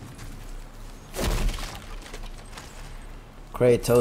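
A heavy wooden chest creaks open.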